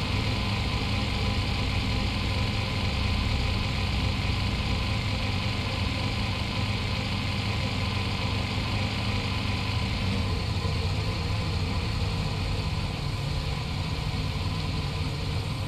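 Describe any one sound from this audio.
Tyres roll on pavement.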